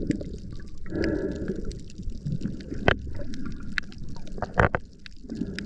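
A diver breathes in through a hissing regulator underwater.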